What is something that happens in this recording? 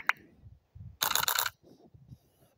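A bright chime sounds as a tile stack clears.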